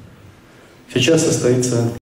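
A man speaks into a microphone over loudspeakers.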